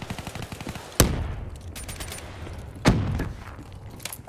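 A rifle fires a few loud shots.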